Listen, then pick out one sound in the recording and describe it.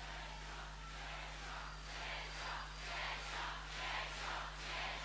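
A large crowd claps in a steady rhythm.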